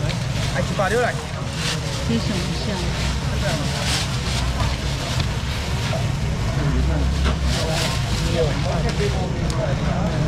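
A busy crowd chatters outdoors.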